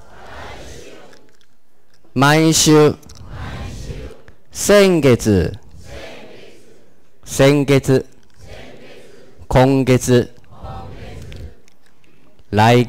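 A man speaks clearly and slowly into a microphone, reading out short words with pauses between them.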